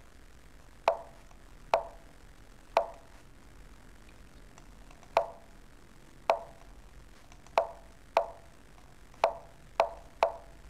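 Sharp wooden clicks of chess pieces being moved sound at irregular intervals.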